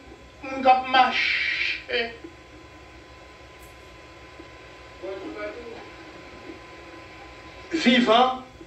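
An elderly man preaches with feeling into a microphone, in bursts with pauses.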